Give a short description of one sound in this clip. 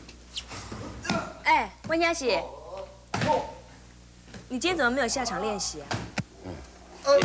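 A young woman speaks with concern, close by.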